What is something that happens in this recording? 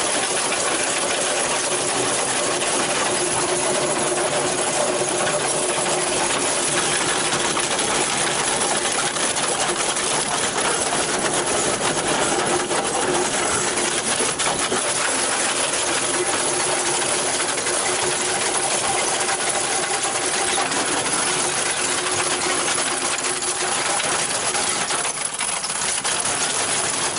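A trench cutter grinds steadily through hard ground.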